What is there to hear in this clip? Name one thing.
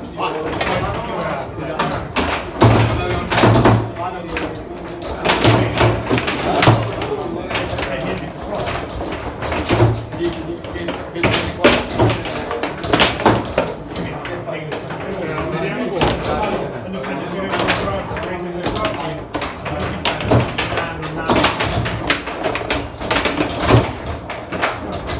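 A foosball clacks and rattles as players spin the rods and strike it.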